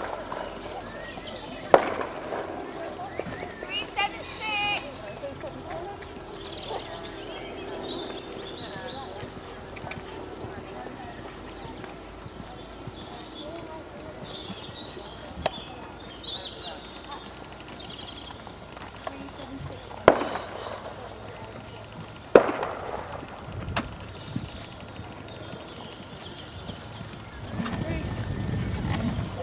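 A horse canters with soft hoof thuds on sand.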